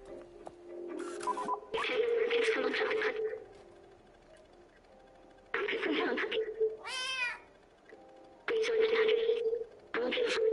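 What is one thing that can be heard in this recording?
A small robot chatters in quick, garbled electronic bursts.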